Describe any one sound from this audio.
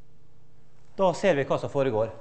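A man speaks aloud in a large echoing hall.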